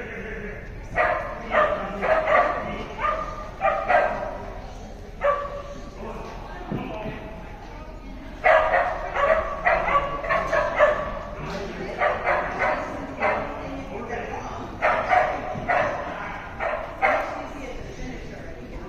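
An adult calls out short commands to a dog, echoing in a large hall.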